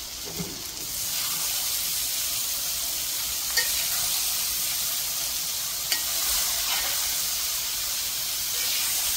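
Chopped cabbage sizzles in a hot pan.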